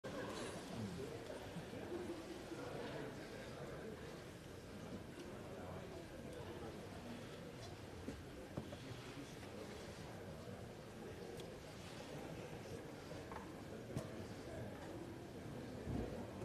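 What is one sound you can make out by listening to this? A crowd of men and women chatter all around in a large room.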